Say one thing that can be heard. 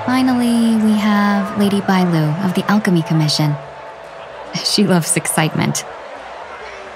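A young woman speaks brightly and cheerfully, close to the microphone.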